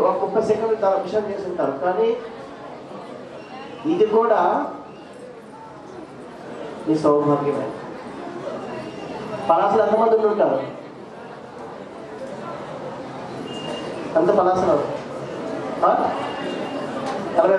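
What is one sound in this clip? A man speaks calmly into a microphone, heard through loudspeakers in a large echoing space.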